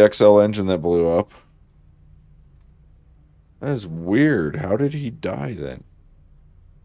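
A man speaks close to a microphone, calmly and expressively.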